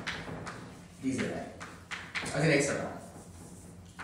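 A man speaks in a large echoing room.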